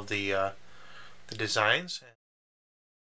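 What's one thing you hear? A square tile is set down on a wooden table with a light clack.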